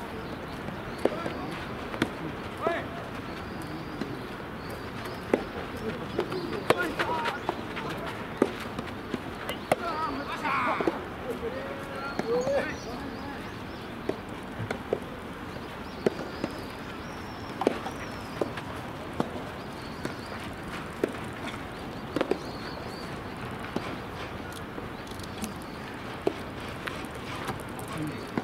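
Rackets hit a tennis ball back and forth outdoors.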